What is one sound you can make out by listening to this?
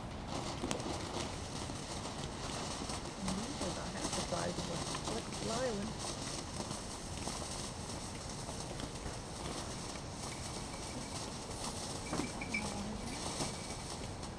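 A firework fountain hisses and crackles steadily.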